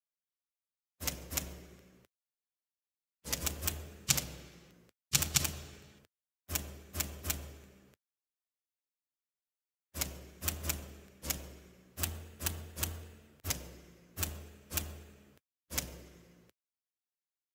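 Short game menu click sounds ring out in quick bursts as selections change.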